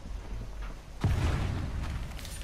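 A metal device clanks as it is set down.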